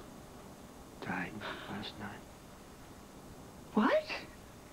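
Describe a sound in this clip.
A middle-aged woman speaks tensely, close by.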